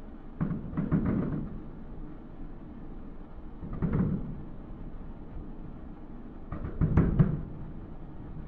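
Fireworks boom and crackle in the distance.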